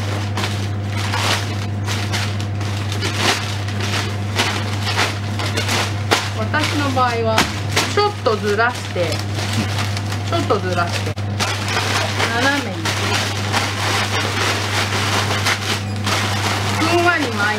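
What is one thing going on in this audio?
Newspaper crinkles and rustles as hands crumple and handle it.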